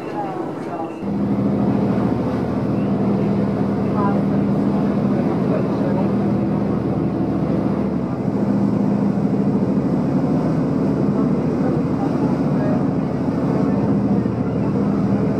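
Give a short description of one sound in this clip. A ferry's engine drones steadily, heard from inside the cabin.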